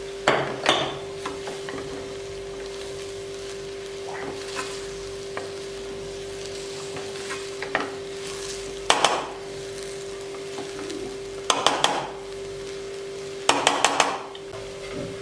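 A spatula scrapes and clatters against a metal pan.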